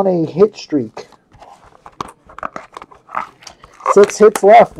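Hands tear open a crinkling card pack.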